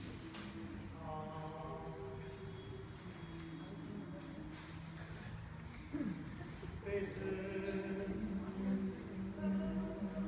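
A congregation of men and women sings together in a large echoing hall.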